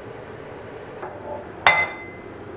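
Thick batter plops into a waffle iron.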